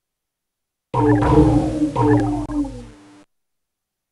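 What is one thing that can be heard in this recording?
A cartoon whooshing sound effect sweeps downward.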